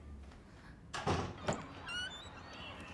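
A door creaks.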